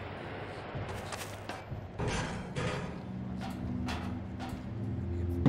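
Footsteps clank on a metal ladder.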